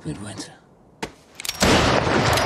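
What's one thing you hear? A gunshot cracks outdoors.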